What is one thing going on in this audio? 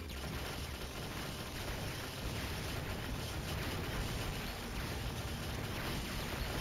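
Rapid electronic gunfire and explosions crackle without pause.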